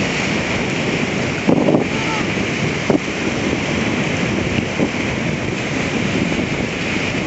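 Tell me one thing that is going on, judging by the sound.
Waves wash and splash against rocks outdoors.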